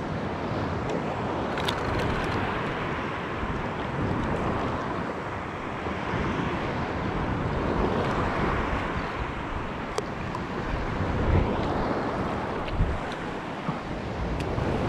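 Wind blows hard and buffets past, outdoors.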